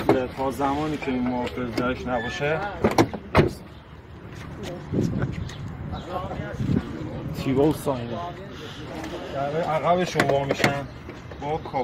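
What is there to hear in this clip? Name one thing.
Fingers knock on a car's side panel.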